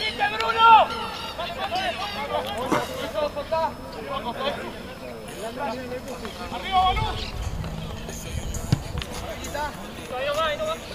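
Players shout to each other across an open outdoor field.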